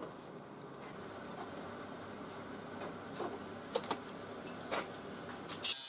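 Metal tools clink and scrape against a metal sheet.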